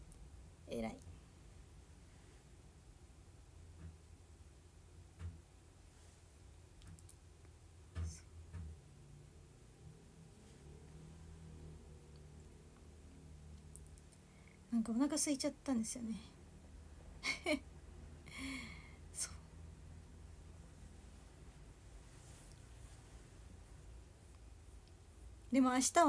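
A young woman speaks softly and casually, close to a microphone.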